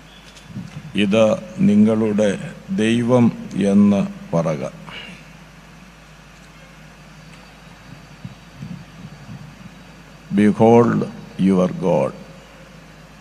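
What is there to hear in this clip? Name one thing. A middle-aged man speaks with feeling through a microphone, pausing often.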